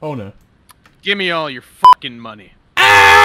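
A man shouts a demand.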